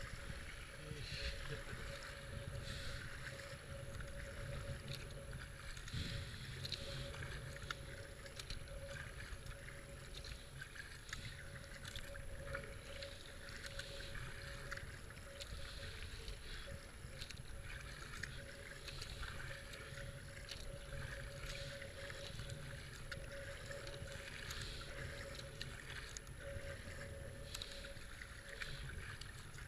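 River water rushes and ripples past a kayak.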